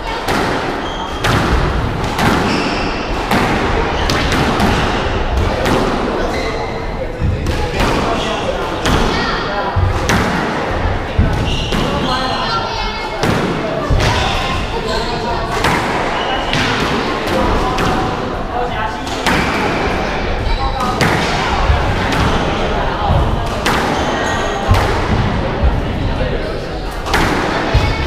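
Rackets strike a squash ball with sharp cracks.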